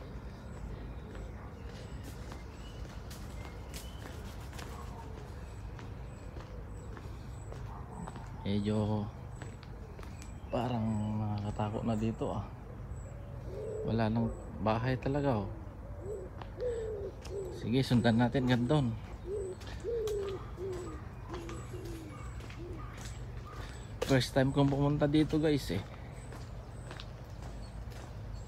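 Footsteps walk steadily along a paved path outdoors.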